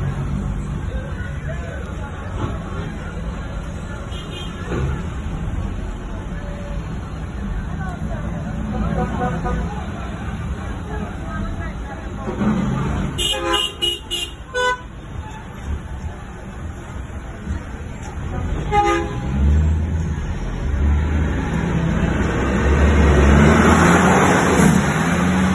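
A truck engine rumbles low and steady close ahead in slow traffic.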